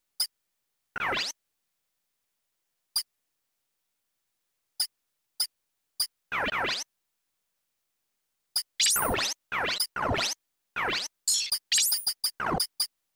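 Electronic whooshing menu sounds sweep in bursts.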